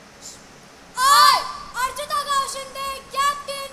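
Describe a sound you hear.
Young girls sing together loudly.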